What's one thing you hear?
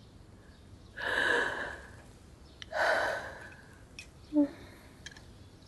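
A young woman sobs quietly up close.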